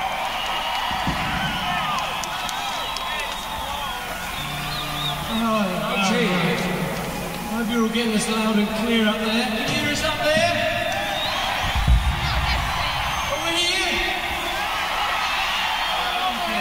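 A man sings loudly into a microphone over a live concert's sound system.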